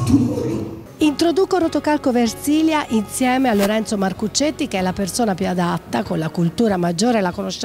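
A woman speaks with animation into a microphone close by.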